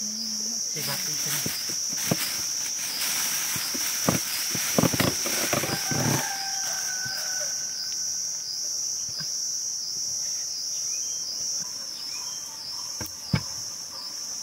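A knife blade chops and scrapes into soil.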